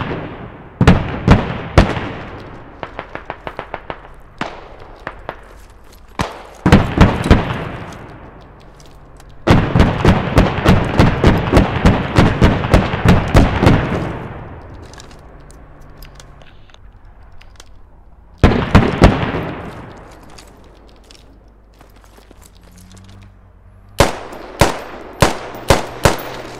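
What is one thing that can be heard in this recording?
Gunshots crack in rapid bursts and echo across open ground.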